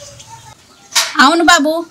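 A young woman talks animatedly on a phone.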